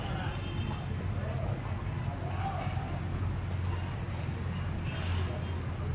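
Men talk quietly nearby.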